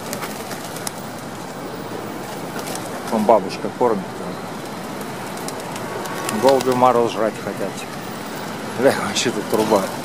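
Pigeons flutter and flap their wings close by.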